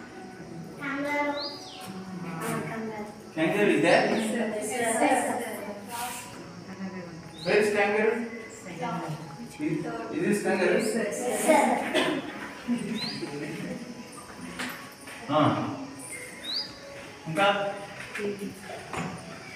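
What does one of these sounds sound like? A man speaks calmly, teaching, in a room with a slight echo.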